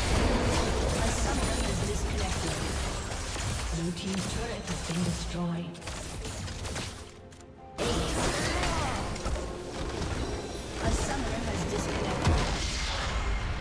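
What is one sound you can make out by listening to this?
Spell blasts and clashing effects from a video game crackle and boom.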